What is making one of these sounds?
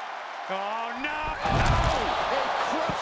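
A heavy body slams down onto the floor with a loud thud.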